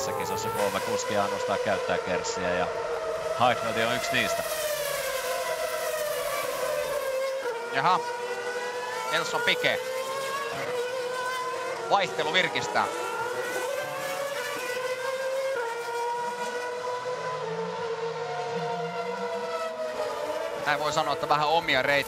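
Racing car engines whine at high revs.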